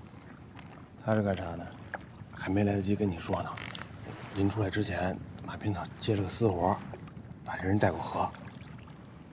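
A man speaks nearby with a firm, questioning tone.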